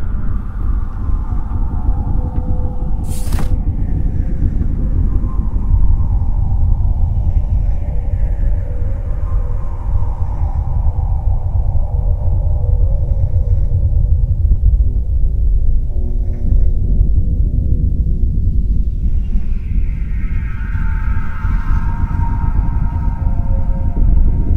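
A deep, steady machine hum drones throughout.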